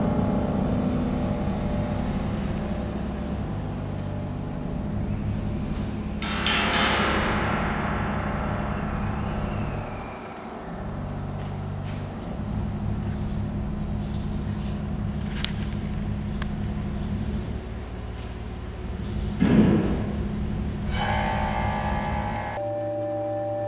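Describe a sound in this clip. An accordion plays sustained chords in a reverberant hall.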